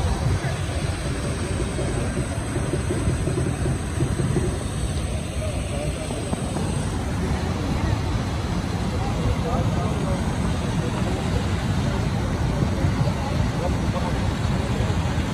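A waterfall roars steadily close by.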